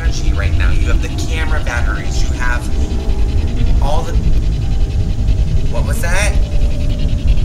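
A young man speaks quietly into a two-way radio.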